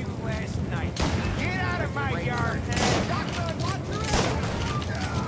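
A shotgun fires several loud shots.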